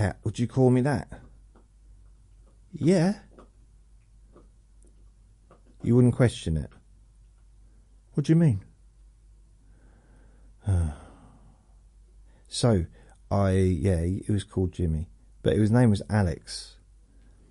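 An older man speaks calmly and close to a microphone, in short bursts with pauses.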